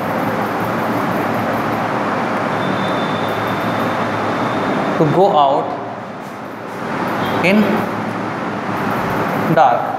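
A marker squeaks across a whiteboard.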